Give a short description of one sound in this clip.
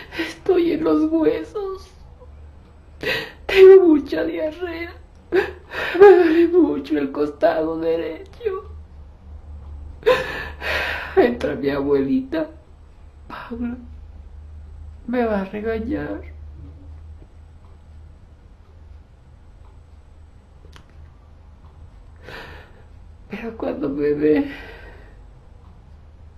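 A woman speaks close by in halting bursts, with pauses between them.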